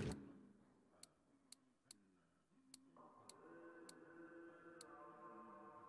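Soft menu clicks tick several times in quick succession.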